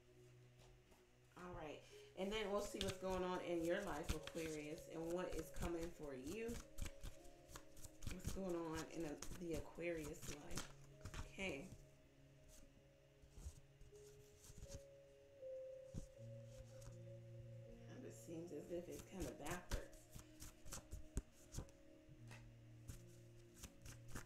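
Paper notes rustle softly as they are laid down on a table.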